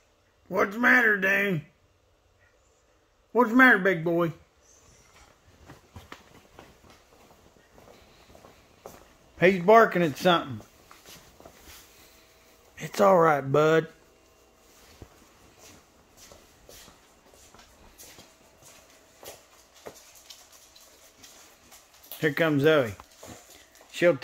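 A man speaks to a dog in short bursts, close by.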